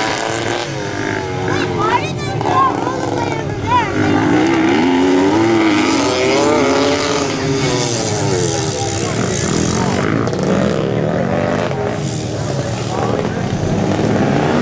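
Several motorcycle engines rev and whine, rising and falling in pitch.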